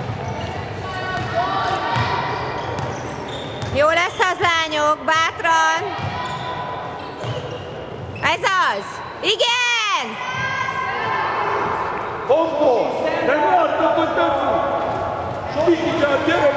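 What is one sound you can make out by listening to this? Young girls shout and call out to each other.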